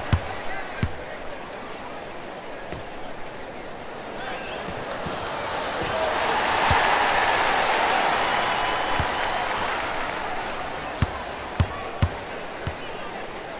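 A crowd cheers and roars in a large arena, swelling and then fading.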